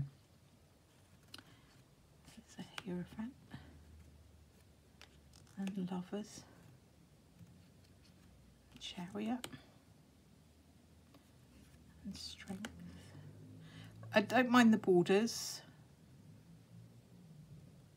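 Playing cards rustle and slide softly on a cloth.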